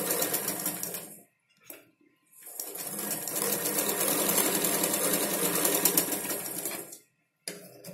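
A sewing machine runs in quick bursts.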